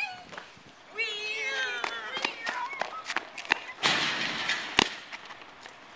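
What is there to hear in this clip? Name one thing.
Teenage boys shout and laugh outdoors.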